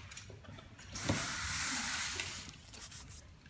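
Hands rub and press down on tape.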